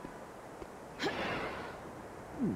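Feet land with a heavy thud on a metal roof.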